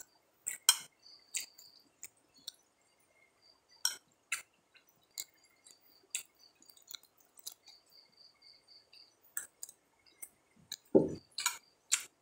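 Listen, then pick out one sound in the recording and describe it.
A metal spoon clinks and scrapes against a plate.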